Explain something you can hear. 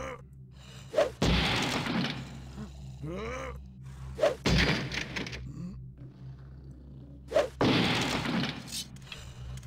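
A sword whooshes through the air in quick swings.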